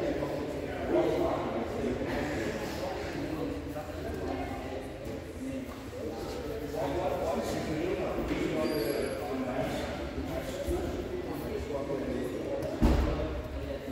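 Bodies thump onto padded mats.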